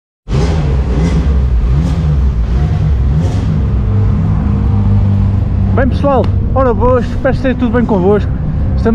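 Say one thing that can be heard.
A car engine rumbles and revs nearby.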